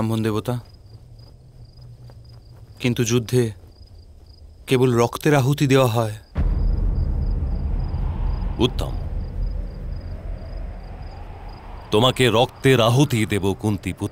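An elderly man speaks gravely, close by.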